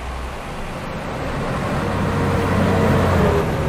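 A truck approaches and passes close by.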